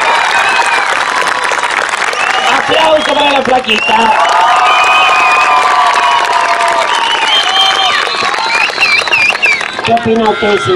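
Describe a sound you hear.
A large crowd cheers, whistles and shouts loudly.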